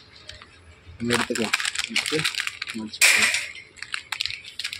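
A plastic snack packet crinkles as it is handled.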